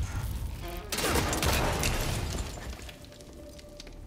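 Debris clatters and scatters across a hard floor.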